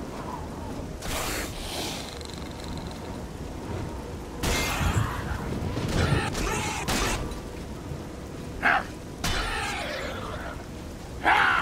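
Fists thud against metal armour in a fight.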